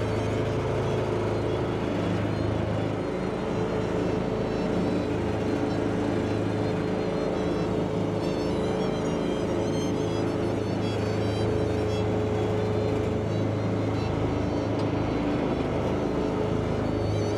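A combine harvester's engine drones steadily close by.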